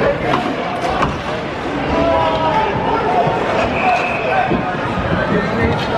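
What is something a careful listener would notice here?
Skates scrape across ice in a large echoing arena.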